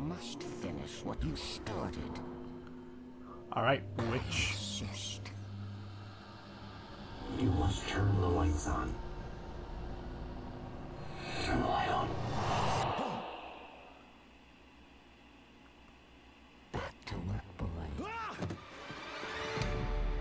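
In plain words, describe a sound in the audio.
An elderly woman speaks in a low, menacing voice.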